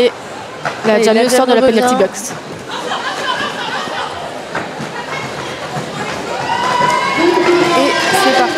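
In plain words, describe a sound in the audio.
Roller skates rumble and clack on a wooden floor in a large echoing hall.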